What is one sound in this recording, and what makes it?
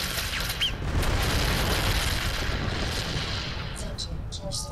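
An explosion booms with a low rumble.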